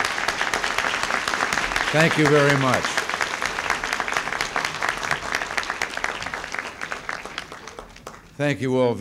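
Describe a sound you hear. A crowd applauds loudly in a large hall, then the clapping fades.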